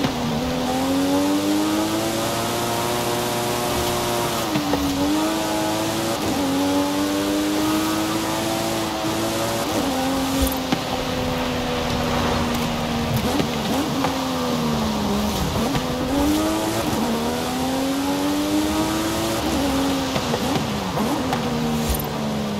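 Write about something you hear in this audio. A sports car engine roars and revs up and down through gear changes.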